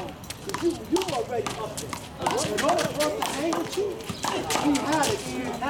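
Several young men shout and call out outdoors.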